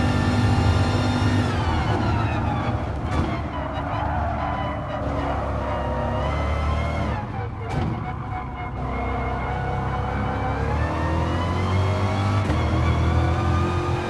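A racing car engine roars, its pitch falling as it slows for a corner and rising again as it speeds up.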